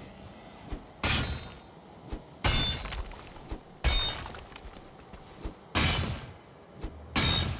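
A pickaxe strikes rock again and again, each blow followed by crumbling stone.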